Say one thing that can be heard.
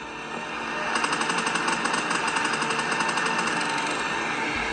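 Rapid gunfire from a video game plays through a small tablet speaker.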